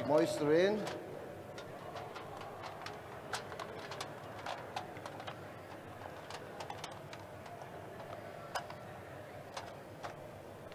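Aluminium foil crinkles as it is pressed over a tray.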